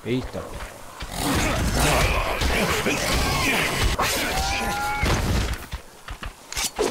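A creature snarls and shrieks while attacking.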